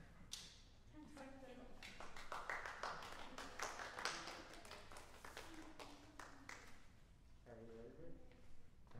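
A young girl speaks in a small voice in an echoing hall.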